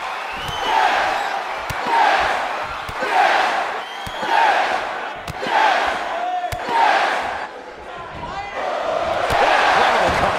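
Kicks land with sharp slapping smacks.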